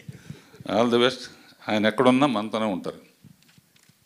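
An elderly man speaks calmly into a microphone over loudspeakers.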